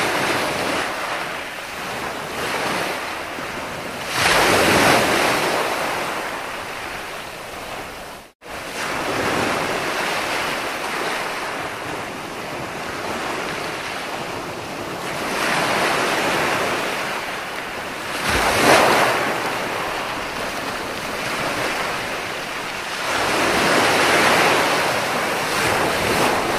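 Foamy water hisses as it spreads across the sand.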